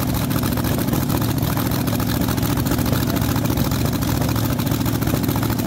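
A dragster engine idles with a loud, rapid, rough rumble close by.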